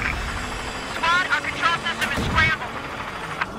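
Car tyres screech in short bursts.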